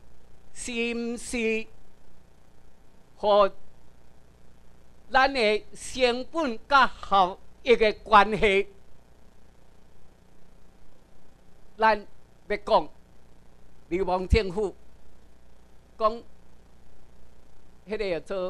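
A middle-aged man speaks with animation through a microphone and loudspeakers, in a bright, echoing hall.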